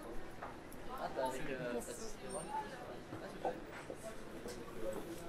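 Men and women chat and murmur nearby outdoors.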